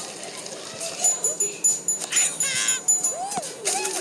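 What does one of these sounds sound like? Coins chime in quick bright pings as they are collected.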